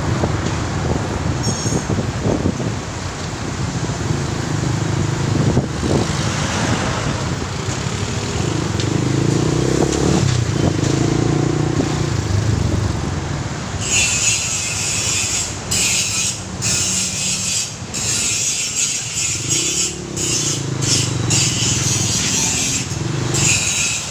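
Traffic rumbles on a busy street.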